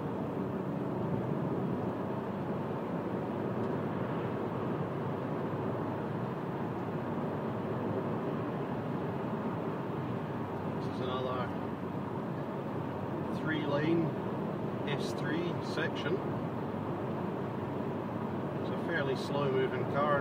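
A car's engine hums and its tyres roar steadily on the road from inside the car.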